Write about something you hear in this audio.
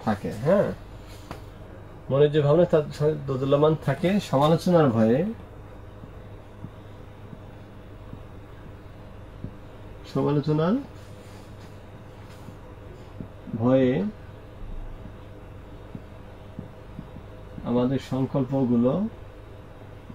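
A man speaks in short bursts, as if explaining.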